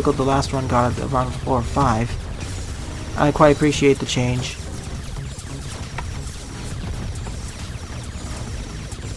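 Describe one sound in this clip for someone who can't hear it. Laser shots fire in quick bursts.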